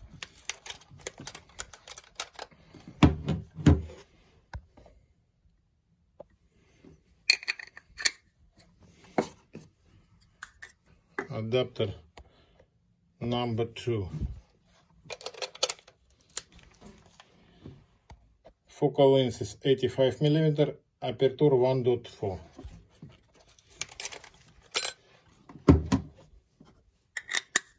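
Small metal parts click and clink as they are handled close by.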